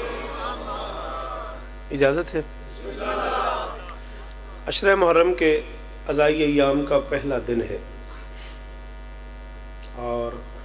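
A man speaks passionately and loudly into a microphone, in bursts with pauses.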